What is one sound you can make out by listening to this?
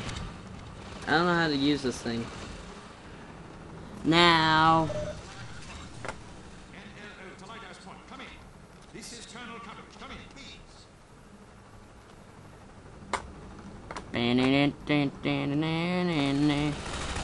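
A man's voice calls out steadily over a crackling radio.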